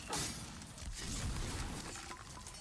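A fiery blast bursts with a roar.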